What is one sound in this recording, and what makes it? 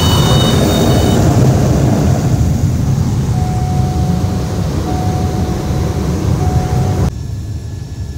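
A single-engine turboprop plane roars, heard from inside the cabin.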